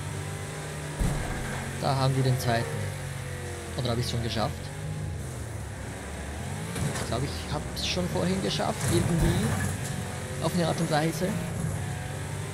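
Metal crunches as cars collide.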